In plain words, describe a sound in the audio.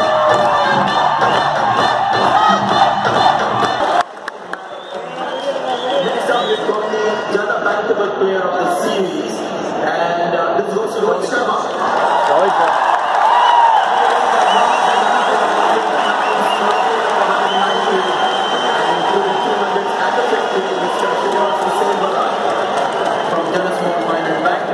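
A large crowd cheers and shouts loudly in an open stadium.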